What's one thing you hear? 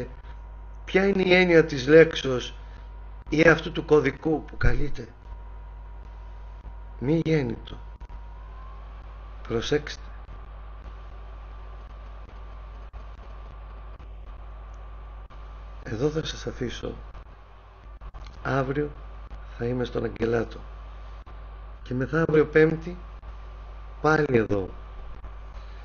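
A man speaks calmly in short phrases with pauses, heard through an online call.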